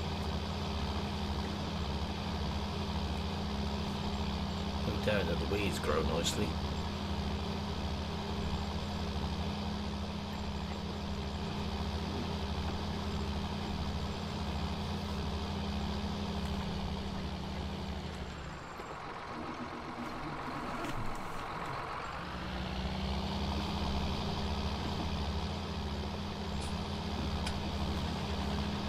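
A tractor engine drones steadily, heard from inside the cab, briefly dropping lower before revving back up.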